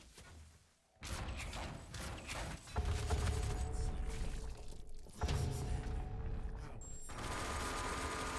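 A heavy gun fires in loud rapid bursts.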